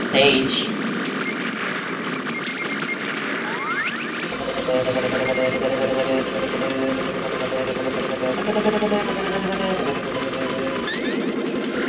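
Rapid electronic shooting sounds chatter constantly.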